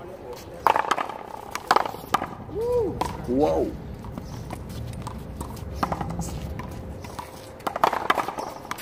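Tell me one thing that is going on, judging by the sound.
A rubber ball smacks hard against a wall outdoors.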